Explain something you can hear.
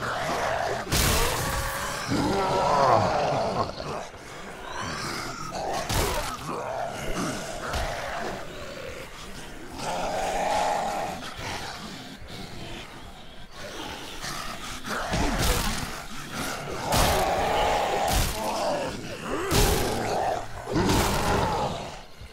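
Weapon blows thud against bodies again and again.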